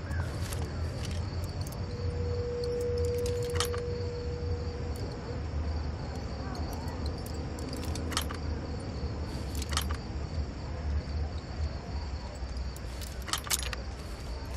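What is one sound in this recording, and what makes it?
Small metal picks scrape and click inside a door lock.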